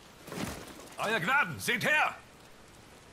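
A man calls out loudly.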